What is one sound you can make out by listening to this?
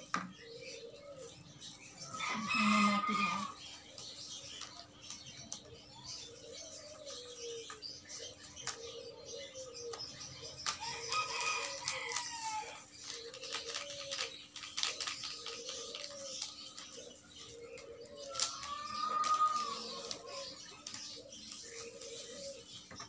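Plastic gloves rustle and crinkle as hands work in a bucket.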